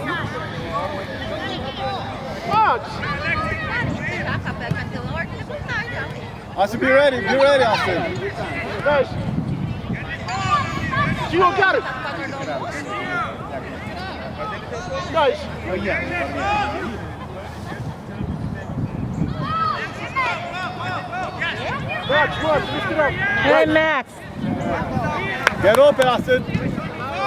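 Children shout and call out to one another outdoors.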